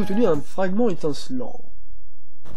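A short, bright video game jingle plays.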